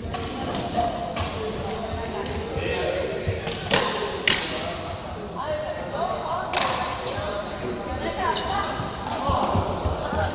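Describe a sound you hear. Children's voices call and chatter, echoing in a large hall.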